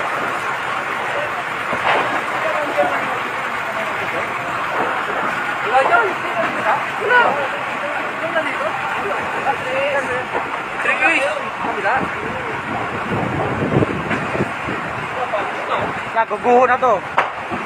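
Fire truck engines rumble steadily.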